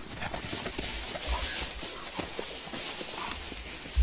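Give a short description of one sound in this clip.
An animal rustles and steps through dry grass.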